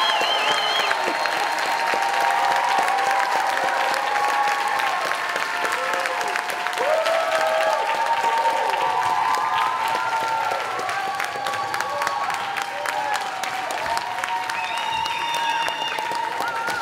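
A crowd cheers and whoops excitedly.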